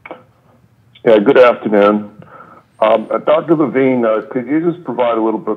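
A man speaks calmly into microphones, loud and close.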